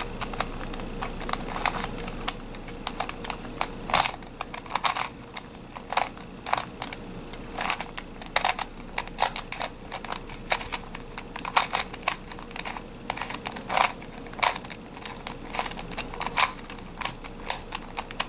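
Plastic puzzle pieces click and clack as they are twisted quickly.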